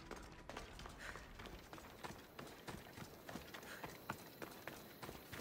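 Footsteps crunch on dirt and gravel at a steady walking pace.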